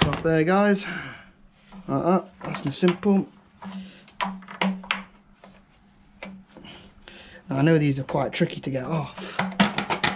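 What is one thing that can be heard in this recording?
A plastic engine cover knocks and clicks into place.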